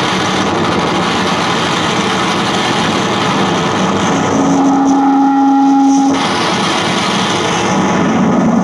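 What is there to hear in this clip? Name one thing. An accordion plays noisy, droning chords.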